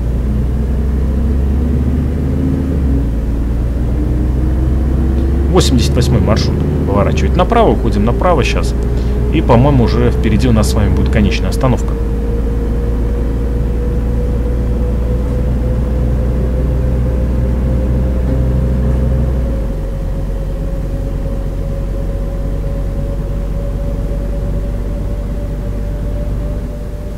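A bus engine hums steadily, its whine slowly rising as the bus speeds up.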